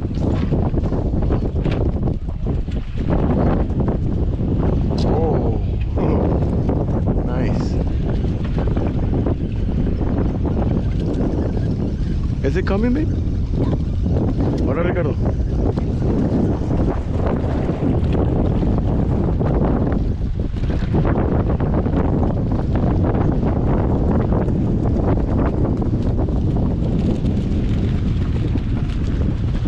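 Wind gusts across a microphone outdoors over open water.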